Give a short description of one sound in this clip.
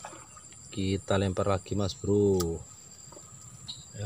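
A fishing weight plops into calm water.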